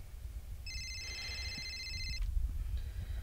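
A phone rings with a bright electronic tone.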